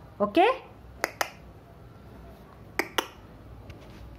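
A young girl giggles in short bursts.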